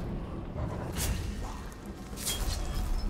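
A fiery explosion bursts with a loud boom.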